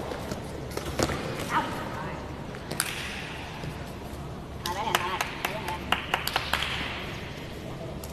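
Young men call out to each other in an echoing hall.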